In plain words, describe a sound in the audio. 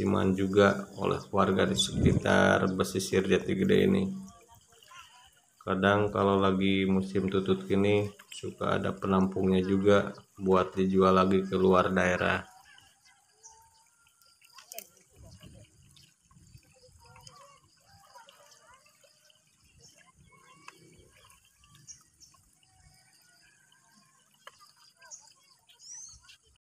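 People wade and splash through shallow water.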